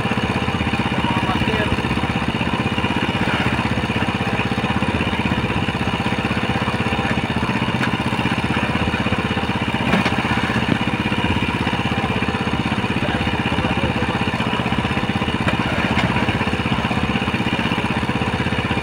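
A boat engine rumbles steadily close by.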